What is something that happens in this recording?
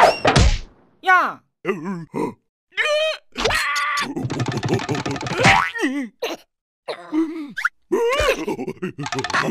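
A high cartoon voice squeals and shrieks with alarm.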